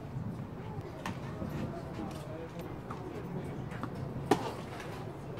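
Tennis balls pop off rackets on a court outdoors.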